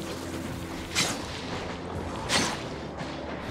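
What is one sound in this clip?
Swords swish and clash in quick strikes.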